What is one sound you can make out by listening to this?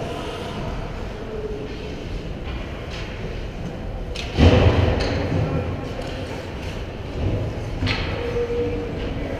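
Skate blades scrape and hiss on ice in a large echoing rink.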